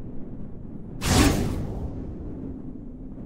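A laser blast fires with a sharp, loud crack that quickly fades.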